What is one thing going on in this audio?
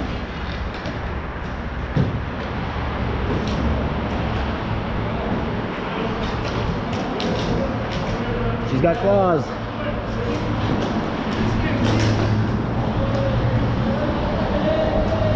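Skate wheels roll steadily over a hard floor.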